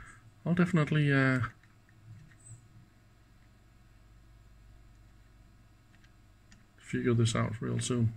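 Buttons on a device click softly as they are pressed.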